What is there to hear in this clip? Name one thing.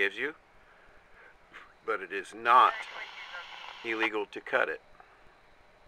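A radio scanner plays short, crackly bursts of transmission through its small speaker.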